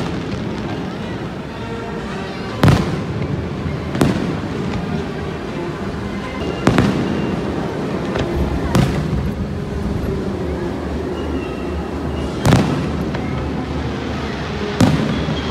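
Fireworks crackle and fizz.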